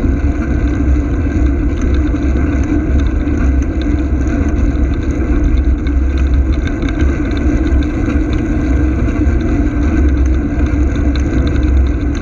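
A car engine hums close behind, following steadily.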